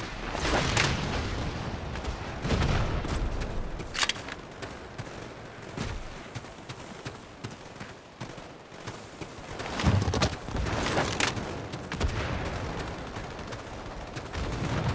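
Footsteps crunch steadily over gravel and dirt.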